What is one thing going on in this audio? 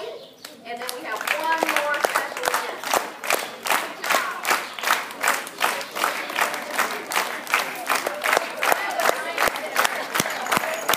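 A crowd of children and adults claps in a steady rhythm.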